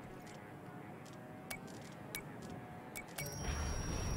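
A combination dial clicks as it turns.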